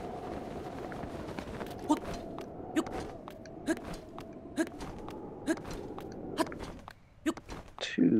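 Soft scraping steps sound at an even pace while climbing a rock face.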